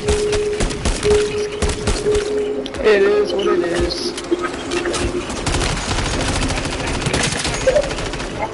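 Rapid gunfire crackles loudly.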